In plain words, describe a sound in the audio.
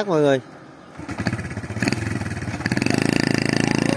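A motorbike engine putters steadily close by.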